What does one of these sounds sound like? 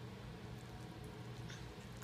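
A baby gnaws and munches on a corn cob up close.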